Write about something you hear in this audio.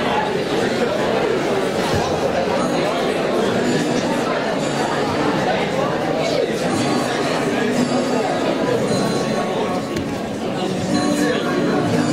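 A choir of young people sings together in a large echoing hall.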